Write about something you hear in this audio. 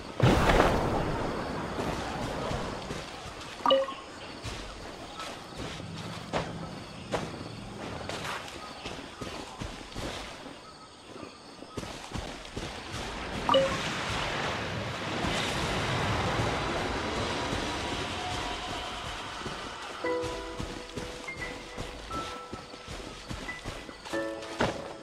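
Footsteps swish quickly through grass.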